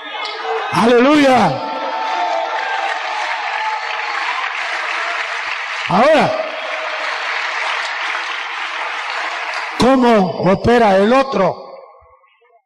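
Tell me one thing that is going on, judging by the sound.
A man preaches fervently, shouting through a microphone.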